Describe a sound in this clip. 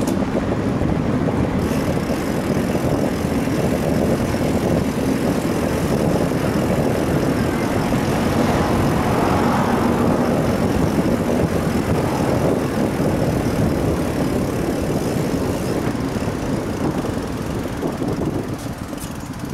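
Wind rushes steadily past a moving bicycle.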